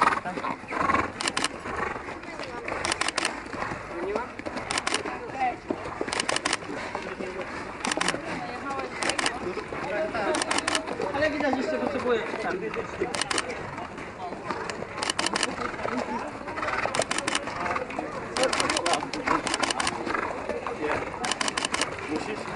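People talk in the background outdoors.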